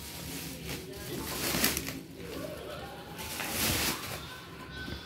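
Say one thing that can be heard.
A plastic mailing bag crinkles and rustles as it is pulled open.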